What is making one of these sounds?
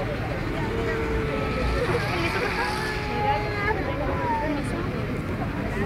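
A crowd of men and women talk over one another close by, outdoors.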